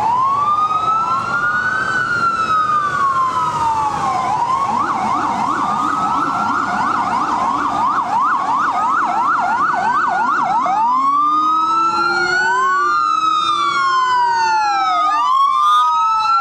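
Emergency sirens wail loudly close by, switching between slow wails and fast yelps.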